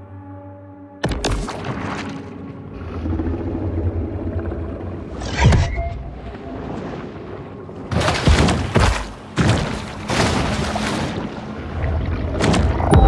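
Water swishes and gurgles as a shark swims underwater.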